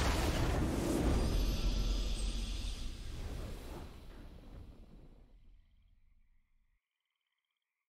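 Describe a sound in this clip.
A triumphant game fanfare swells and slowly fades away.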